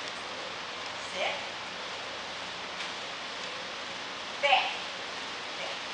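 A woman calls out short commands to a dog.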